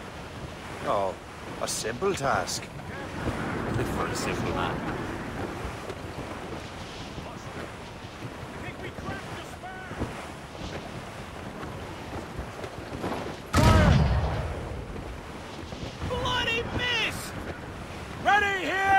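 Waves wash against a ship's hull.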